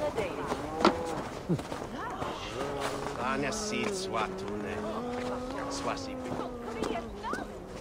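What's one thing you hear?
Hands and boots scrape on a stone wall during a climb.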